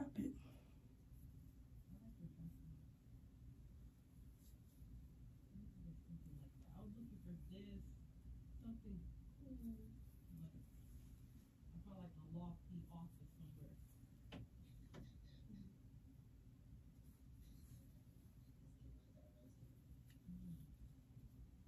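A young woman talks quietly and calmly, close by.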